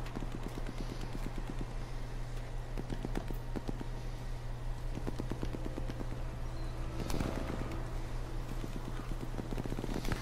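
Footsteps creep over stone paving.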